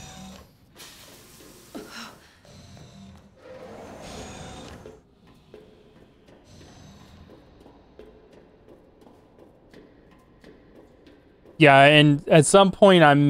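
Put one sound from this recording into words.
Footsteps tap on a metal floor.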